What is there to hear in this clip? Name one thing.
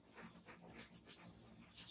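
A brush strokes lightly across paper.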